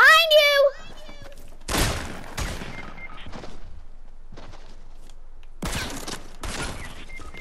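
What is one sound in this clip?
Footsteps of a running video game character patter on the ground.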